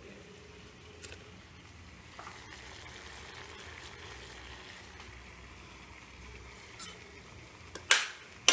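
A metal pot clinks.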